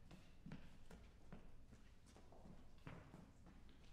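A child's footsteps cross a wooden stage.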